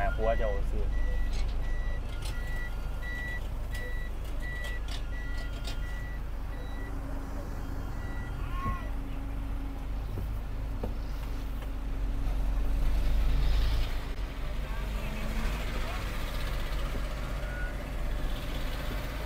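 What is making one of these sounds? A truck's diesel engine hums steadily from inside the cab.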